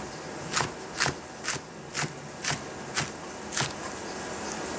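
A knife chops rapidly on a plastic cutting board.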